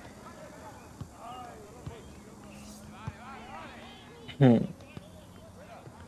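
A football is kicked with short dull thuds.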